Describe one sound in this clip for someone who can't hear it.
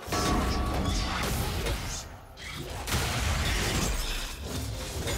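Magic spells crackle and burst in a busy fight.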